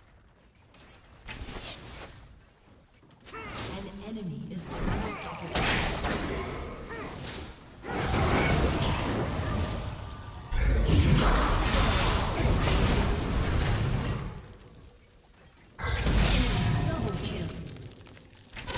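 Fantasy game spells whoosh and clash in a busy fight.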